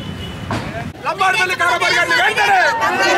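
A crowd of men and women chant slogans loudly.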